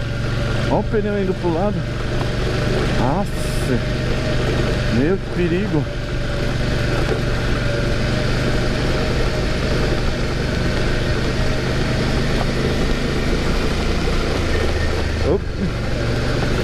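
Tyres rumble over cobblestones.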